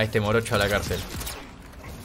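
A pistol fires a sharp shot.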